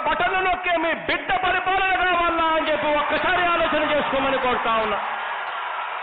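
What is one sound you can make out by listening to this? A man shouts forcefully into a microphone over loudspeakers.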